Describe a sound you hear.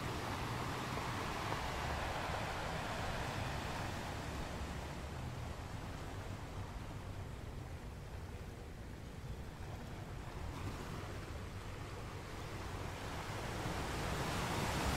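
Ocean waves roar and crash steadily onto rocks, swelling and easing.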